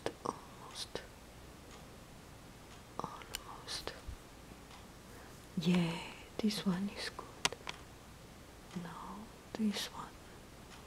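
A small plastic object clicks and taps as it is handled up close.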